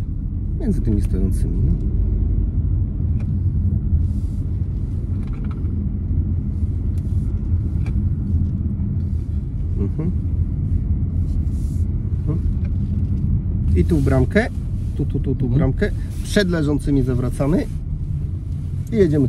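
A car's engine and tyres rumble steadily from inside the car.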